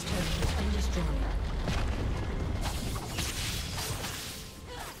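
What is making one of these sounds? Magic blasts crackle and whoosh in a busy fight.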